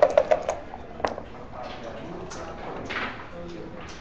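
Dice tumble and click onto a wooden board.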